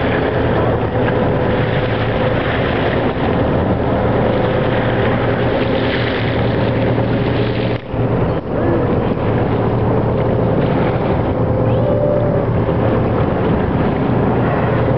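Wind buffets hard and steadily outdoors.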